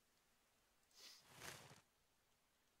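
A magical whoosh sweeps past.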